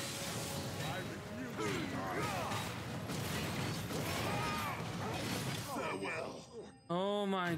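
Blades clash and slash in a fierce fight.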